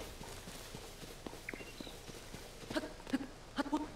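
A character runs through rustling grass.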